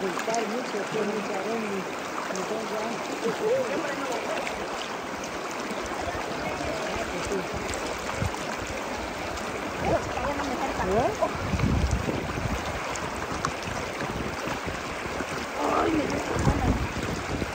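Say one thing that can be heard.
Young women talk and laugh nearby outdoors.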